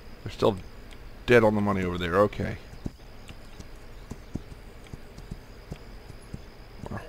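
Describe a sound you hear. Horse hooves clop steadily on the ground.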